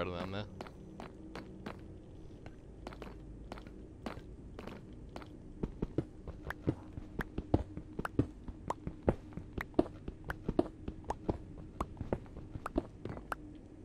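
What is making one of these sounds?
Footsteps tap on hard ground at a quick, steady pace.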